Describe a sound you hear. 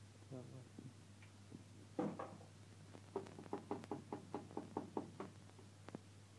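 Eggshells crack with sharp taps against a pan's rim.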